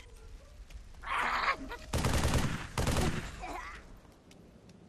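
A gun fires loud rapid bursts.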